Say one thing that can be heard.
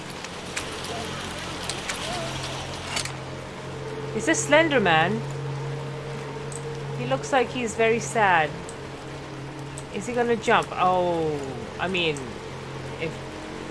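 Rain falls steadily on rooftops outdoors.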